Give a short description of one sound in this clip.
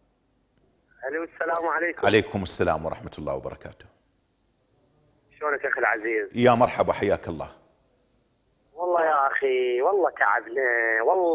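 A middle-aged man speaks calmly and clearly into a microphone, with pauses.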